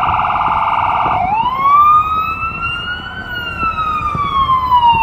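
Traffic rumbles steadily in a city street.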